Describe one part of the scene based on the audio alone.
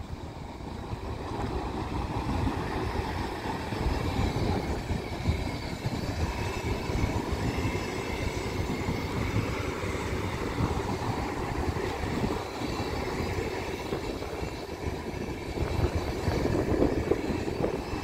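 A passenger train rolls past close by, its wheels rumbling and clattering on the rails.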